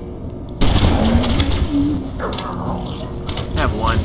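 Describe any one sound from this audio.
Plasma bolts whizz past and burst.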